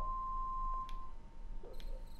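A television gives off a steady beep.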